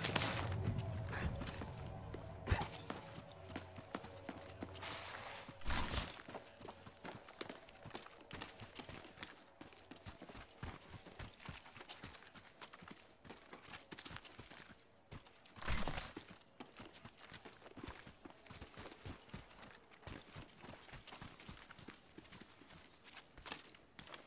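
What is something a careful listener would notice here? Quick footsteps patter on the ground as a game character runs.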